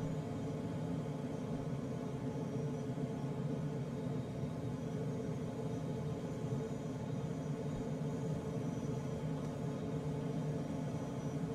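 Air rushes steadily past a glider's canopy, a low, constant roar.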